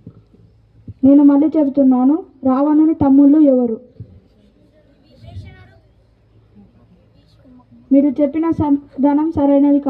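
A boy speaks loudly into a microphone through a loudspeaker, in bursts with pauses, outdoors.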